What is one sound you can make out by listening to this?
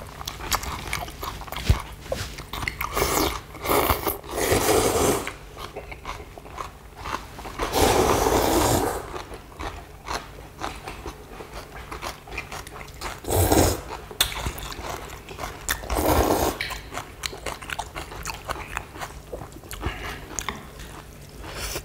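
People slurp noodles loudly, close by.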